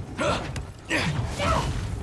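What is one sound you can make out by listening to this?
A heavy kick lands with a thud.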